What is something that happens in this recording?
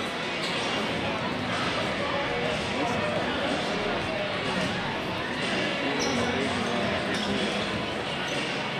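A large crowd cheers and chatters loudly in an echoing gym.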